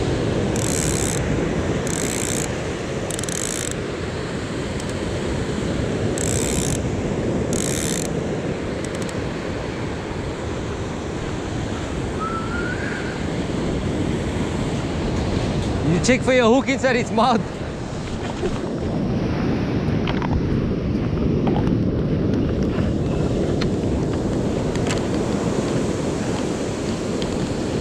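Waves break and wash up on a shore.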